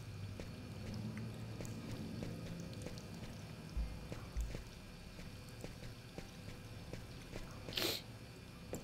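Footsteps tap on a tiled floor in an echoing room.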